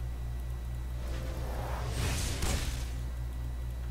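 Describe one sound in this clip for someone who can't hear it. Fantasy game spell effects whoosh and crackle.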